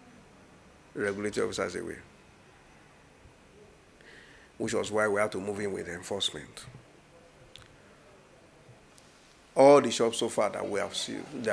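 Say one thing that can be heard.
A man speaks calmly and earnestly into a nearby microphone, in short bursts with pauses.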